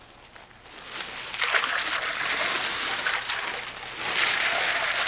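Ice cubes pour and rattle into a tub of water.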